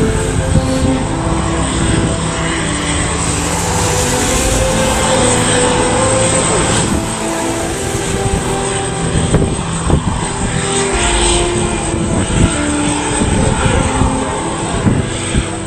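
A jet airliner's engines roar loudly as it rolls along a runway.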